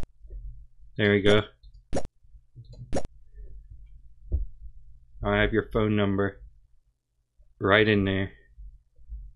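A young man speaks briefly into a microphone, in short bursts.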